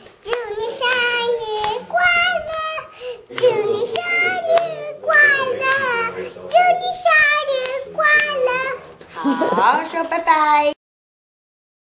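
A young girl claps her hands.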